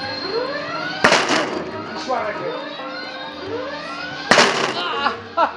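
A hammer strikes a strength-tester machine with loud bangs.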